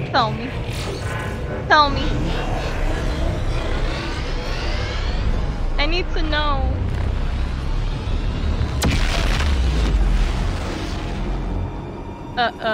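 Deep rumbling blasts and roars fill the air, then fade.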